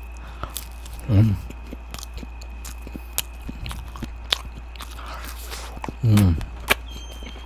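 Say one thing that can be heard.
A man hums briefly with his mouth closed.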